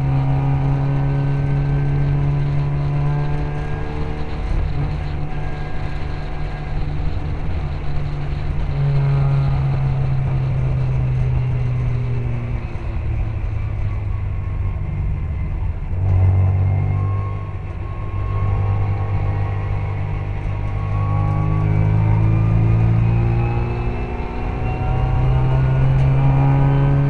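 A small racing car's engine drones loudly from inside, rising and falling in pitch as it shifts gears.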